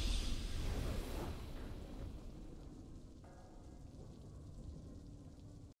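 A triumphant video game victory sound swells loudly and then fades.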